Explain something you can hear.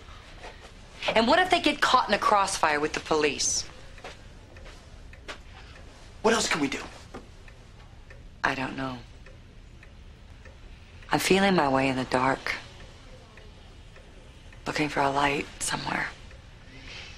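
A woman speaks tensely and close by, in short bursts.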